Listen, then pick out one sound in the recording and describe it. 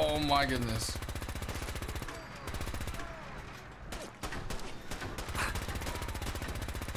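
A laser gun fires in rapid, buzzing bursts.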